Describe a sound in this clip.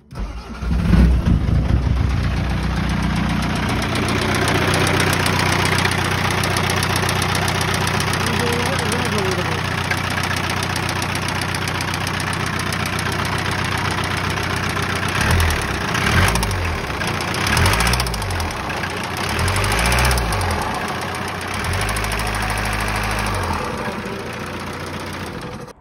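A diesel engine idles with a steady, close rattling clatter.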